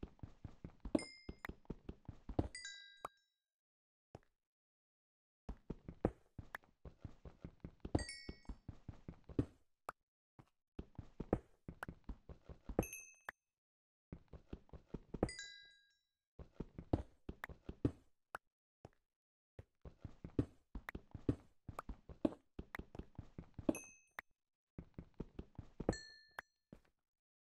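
Short, bright chimes ring out now and then.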